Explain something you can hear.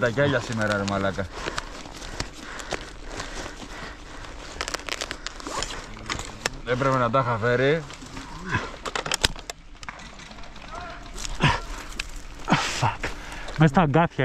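Metal gear clicks and rattles as a rifle is handled.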